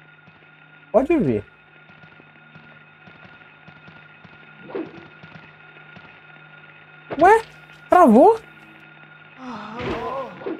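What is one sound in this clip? A young man exclaims loudly into a microphone in short outbursts.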